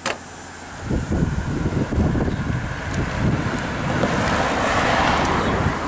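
A car drives past on asphalt.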